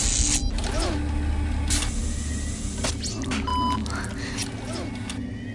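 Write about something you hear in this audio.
A metal probe squelches wetly into soft brain tissue.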